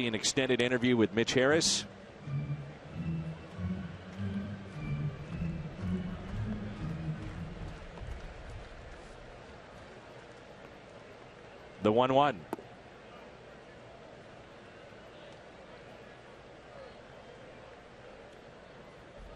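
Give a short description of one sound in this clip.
A crowd murmurs softly in a large open stadium.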